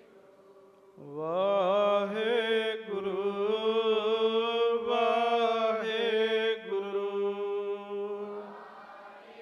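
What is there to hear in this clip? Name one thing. A young man sings slowly and melodically into a microphone.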